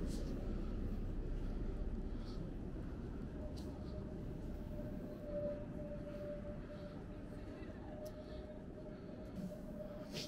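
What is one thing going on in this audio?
An electric tram hums as it approaches along a street.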